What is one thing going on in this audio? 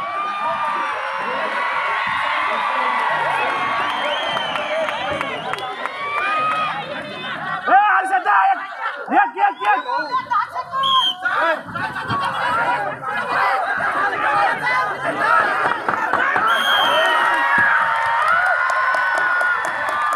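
A large outdoor crowd cheers and chatters.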